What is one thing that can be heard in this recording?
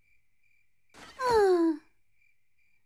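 A young cartoon girl cries out loudly.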